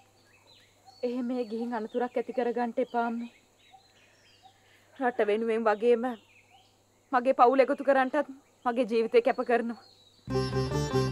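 A middle-aged woman speaks in a low, earnest voice.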